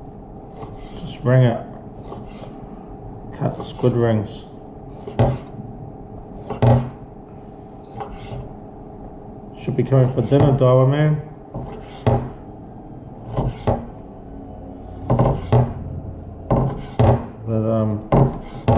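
A knife taps against a wooden cutting board as it slices soft food.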